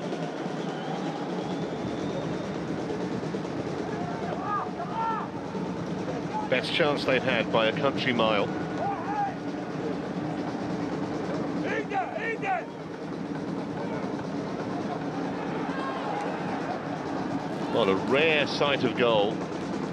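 A stadium crowd murmurs steadily in a large open space.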